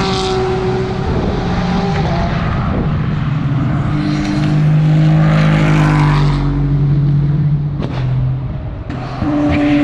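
A race car engine roars loudly as the car speeds past and fades.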